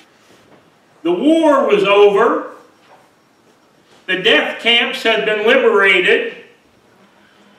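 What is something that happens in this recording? An elderly man preaches with feeling through a microphone, in short bursts with pauses.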